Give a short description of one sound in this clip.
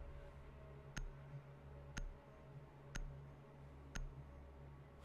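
A countdown timer ticks once a second with short, sharp beeps.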